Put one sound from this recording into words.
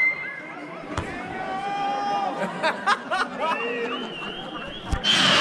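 Fireworks crackle in the sky.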